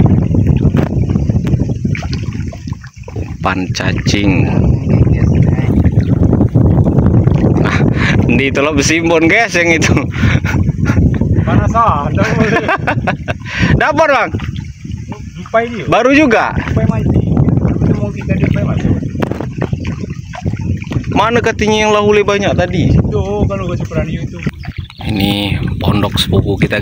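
Water splashes and laps against a small wooden boat moving along a river.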